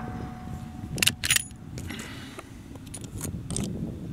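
A rifle bolt clacks and clicks nearby.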